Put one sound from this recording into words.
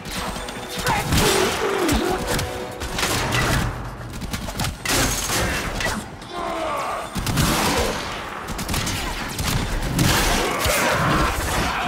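A blade swings and strikes metal with harsh, ringing bursts.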